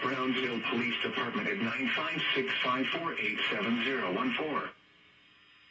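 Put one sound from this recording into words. A television plays loud programme sound through its speaker.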